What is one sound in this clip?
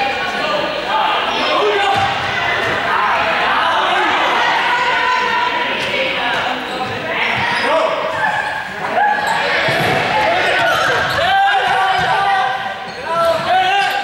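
Young girls shout and call out across a large echoing hall.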